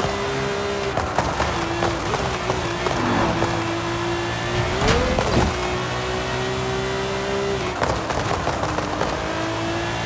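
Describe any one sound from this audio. Exhaust pops and crackles as the car slows.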